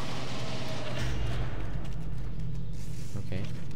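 A heavy metal door slides open with a deep rumble.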